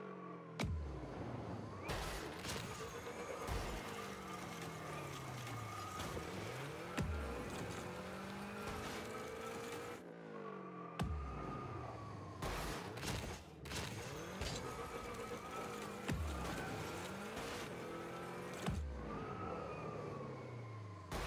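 A car's engine roars as it boosts, with a rushing hiss.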